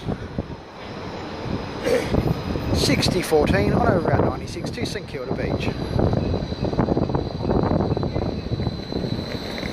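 An electric tram approaches, rumbling along street rails.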